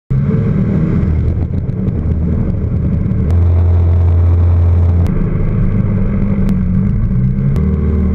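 A small propeller plane's engine drones loudly and changes pitch as it manoeuvres.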